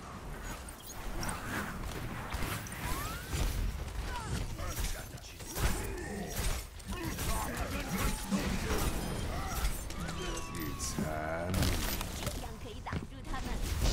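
A game gun fires rapid shots.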